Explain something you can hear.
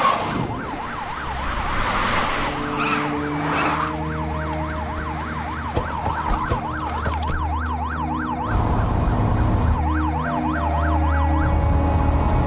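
Police sirens wail rapidly up and down.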